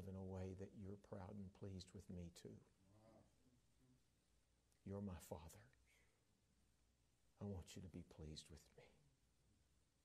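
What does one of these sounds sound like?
An elderly man speaks calmly and deliberately into a microphone, with pauses between phrases.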